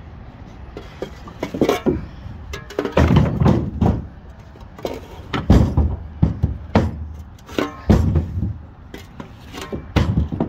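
A metal shovel scrapes and clatters among loose wooden blocks.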